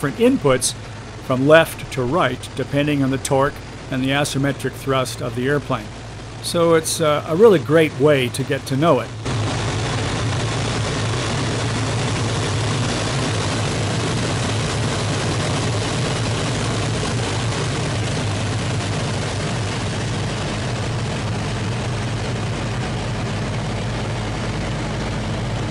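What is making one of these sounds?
A propeller aircraft engine drones steadily and loudly from close by.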